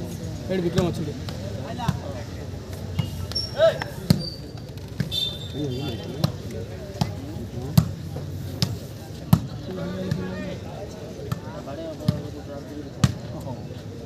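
A ball is kicked with sharp thuds again and again.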